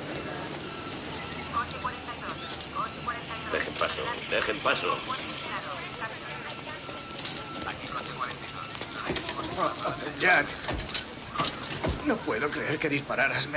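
A crowd of people talks and calls out in a busy murmur.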